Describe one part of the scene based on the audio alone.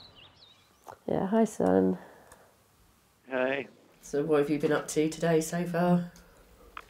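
A middle-aged woman speaks quietly into a phone close by.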